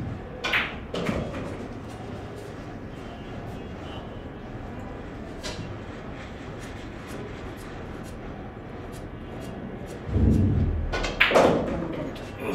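Billiard balls click together on a nearby table.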